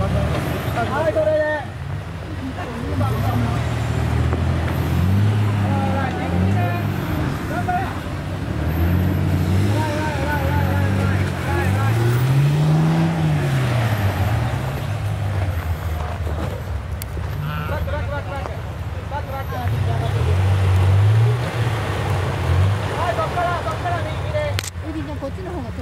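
Men and women talk casually nearby outdoors.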